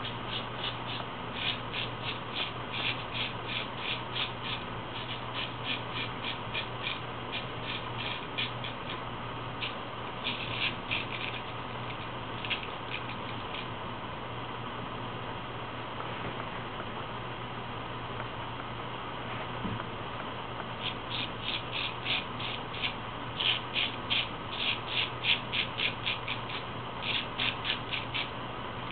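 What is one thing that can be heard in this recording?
A razor scrapes over stubble in short, quick strokes.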